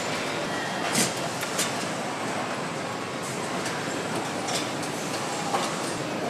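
Metal clanks as a worker handles an engine block.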